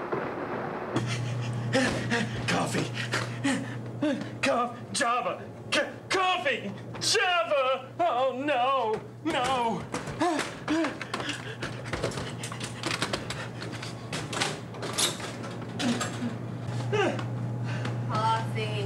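A man talks excitedly close by.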